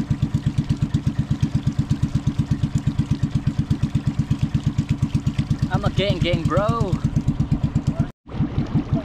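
A boat engine chugs rapidly and steadily up close.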